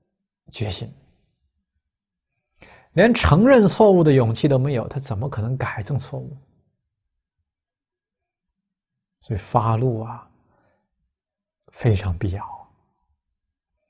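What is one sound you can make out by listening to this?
A middle-aged man speaks calmly and expressively into a close microphone, with pauses.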